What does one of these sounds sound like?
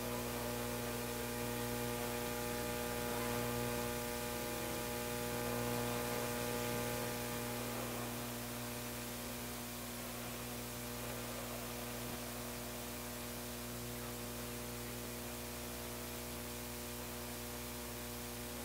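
An amplifier hums steadily.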